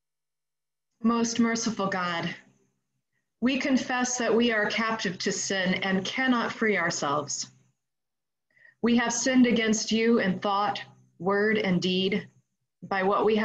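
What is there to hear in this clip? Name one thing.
A woman reads aloud calmly through an online call.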